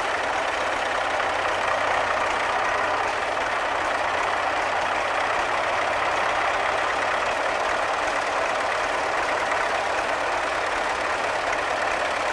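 A hydraulic loader arm whines as it moves.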